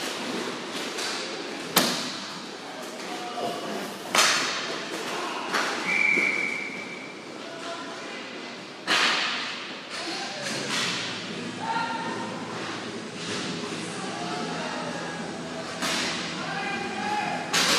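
Skate wheels roll and scrape on the hard floor.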